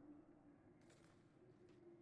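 A fire burns with a soft crackle.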